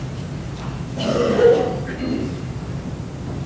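A man speaks briefly in a large echoing hall.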